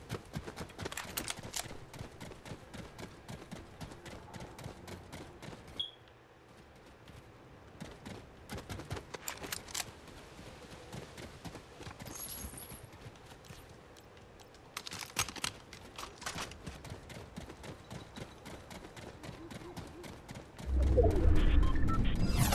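Footsteps run quickly over hard pavement.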